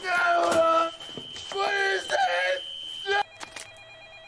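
A man groans and cries out in pain close by.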